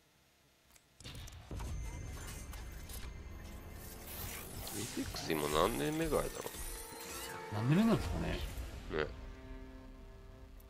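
A game box opens with a rising whoosh and a bright burst.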